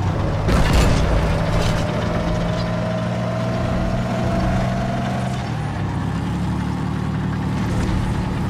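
A vehicle engine hums steadily as it drives.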